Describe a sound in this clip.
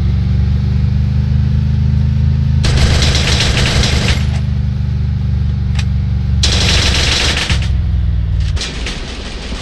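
A truck engine drones steadily, then cuts out.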